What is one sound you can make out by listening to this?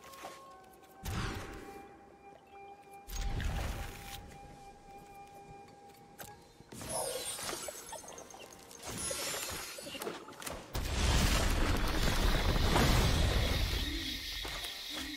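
Card game sound effects swoosh and chime.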